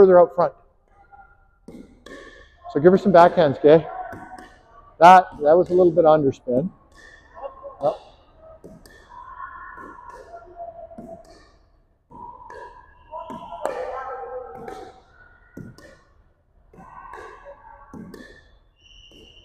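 Paddles pop against a plastic ball.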